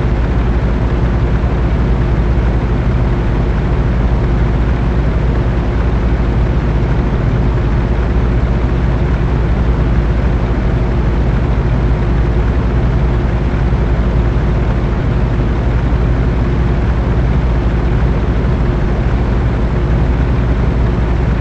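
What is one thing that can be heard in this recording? Tyres roll over a gravel road.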